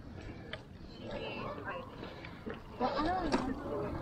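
Children talk nearby as they walk past outdoors.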